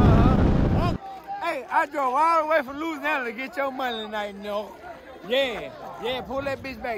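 Men talk and shout excitedly nearby.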